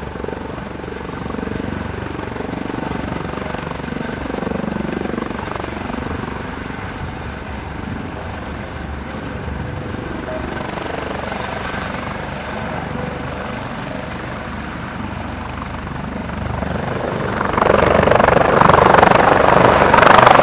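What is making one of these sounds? A helicopter hovers close by with a steady engine roar and thudding rotor blades.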